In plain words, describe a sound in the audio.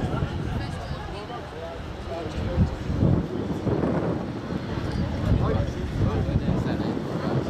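Men shout and call out to each other outdoors across an open field.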